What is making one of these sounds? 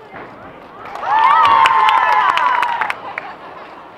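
Girls cheer loudly.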